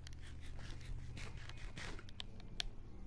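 A character munches food with short crunchy bites.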